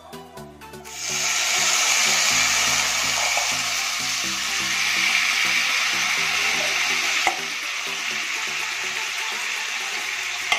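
Mushrooms sizzle loudly in hot oil in a pan.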